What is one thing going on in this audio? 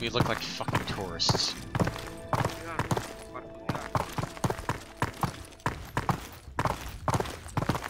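Footsteps crunch on gravelly ground at a steady walking pace.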